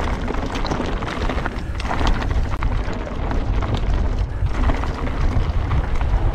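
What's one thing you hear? Bicycle tyres crunch and rattle over a loose gravel trail.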